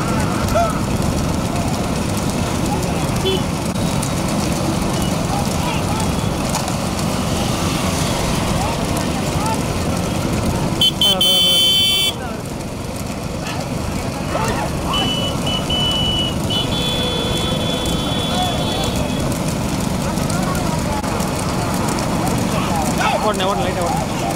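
Motorcycle engines roar steadily close behind.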